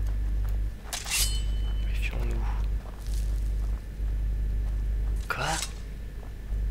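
A blade swishes sharply through the air.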